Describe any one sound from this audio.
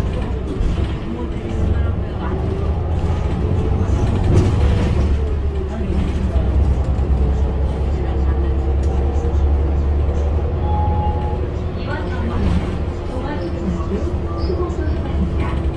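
Tyres roll on the road beneath a moving bus.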